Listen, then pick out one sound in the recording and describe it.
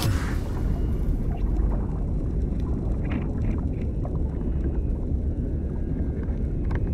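Water rumbles low and muffled, as heard from underwater.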